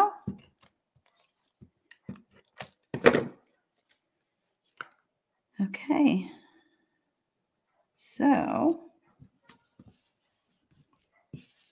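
Paper rustles and taps as a hand handles card.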